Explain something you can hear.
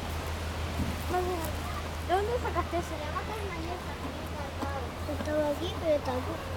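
A young child talks nearby with animation.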